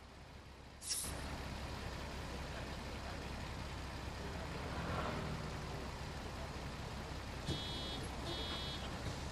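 A bus engine idles with a steady low hum nearby.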